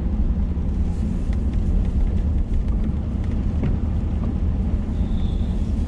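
A windshield wiper swipes once across the glass.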